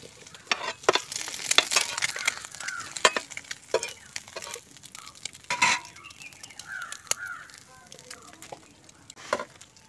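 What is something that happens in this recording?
Eggs sizzle in oil in a frying pan.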